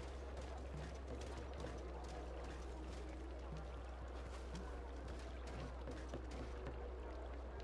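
Soft footsteps pad across stone.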